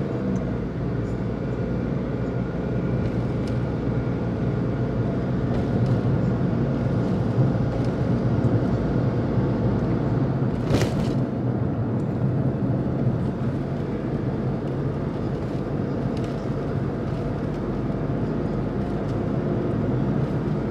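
A car engine hums steadily from inside as it drives.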